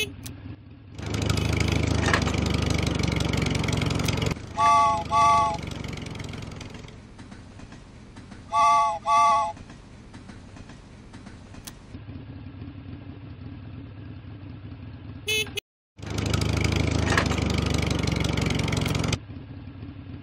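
A toy truck's engine rumbles loudly.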